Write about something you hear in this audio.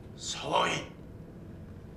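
A man shouts sharply.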